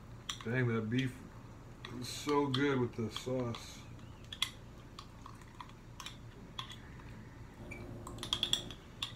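A metal spoon clinks and scrapes inside a glass jar.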